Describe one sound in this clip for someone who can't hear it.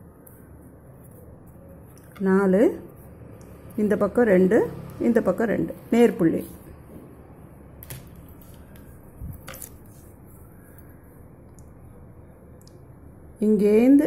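A pen taps dots onto paper.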